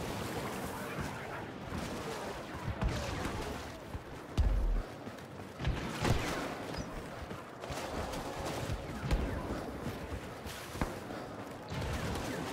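Footsteps splash through shallow water.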